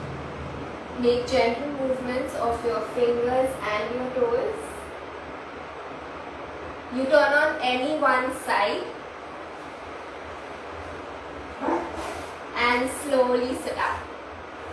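A woman speaks calmly nearby in short phrases.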